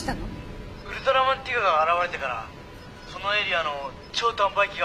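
A young man speaks calmly through a loudspeaker.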